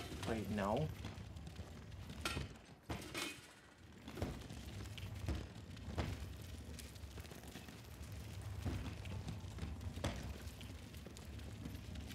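A heavy metal crate scrapes and grinds along a stone floor.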